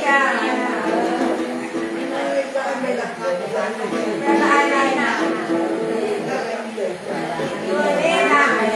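An elderly woman sings in a wavering voice close by.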